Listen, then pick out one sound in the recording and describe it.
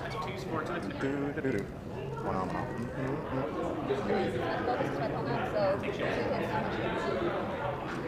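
Plastic game pieces click on a table.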